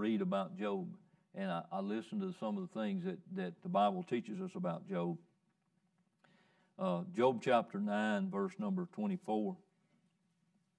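A middle-aged man reads aloud calmly through a microphone.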